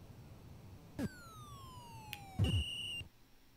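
Falling electronic tones sweep down in pitch.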